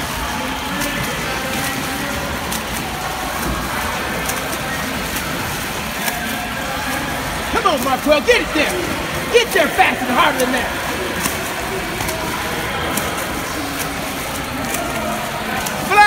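A swimmer splashes through water nearby.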